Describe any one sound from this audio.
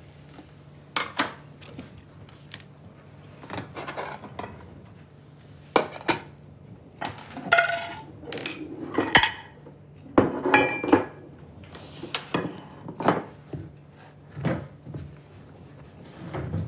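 Plates and dishes clink and clatter as they are set down on a table.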